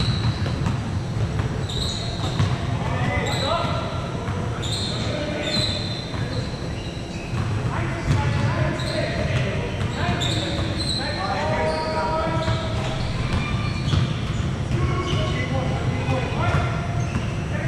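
Young men call out to each other during a game.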